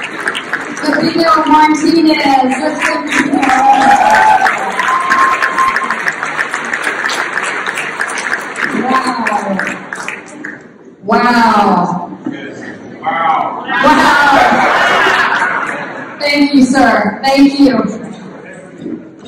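A man speaks loudly over a microphone to an audience.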